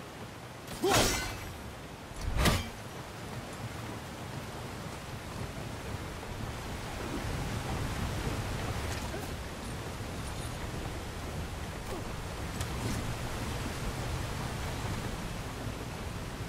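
Water rushes steadily from a nearby waterfall.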